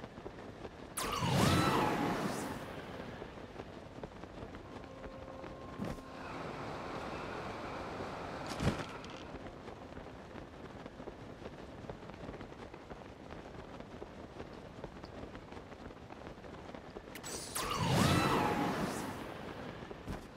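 Wind rushes loudly in gusts as a figure dives through the air.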